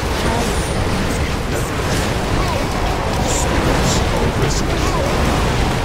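Magic spells crackle and burst.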